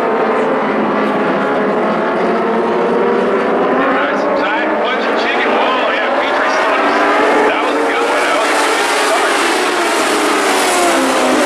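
Race car engines roar and whine loudly.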